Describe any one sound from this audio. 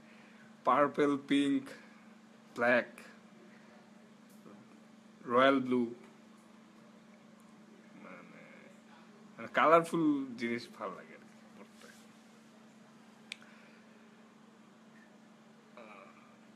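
A young man talks casually and close to a phone microphone, in short bursts with pauses.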